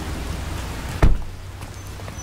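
A car door slams shut with a thud.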